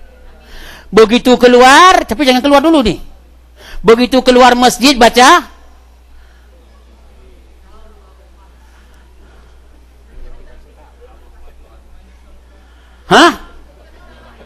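A man speaks loudly through a microphone, with long pauses, in an echoing hall.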